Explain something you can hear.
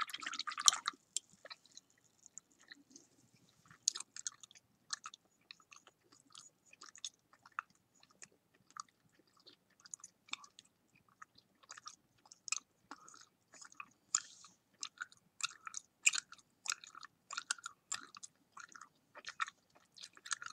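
A paintbrush taps and swishes against a cup of water.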